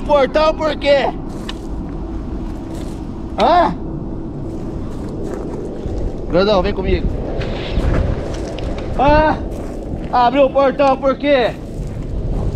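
A young man shouts loudly in short bursts nearby.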